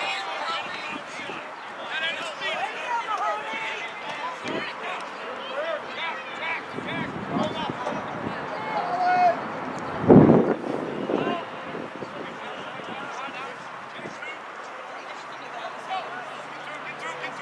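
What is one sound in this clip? Young men shout to one another from a distance across an open field.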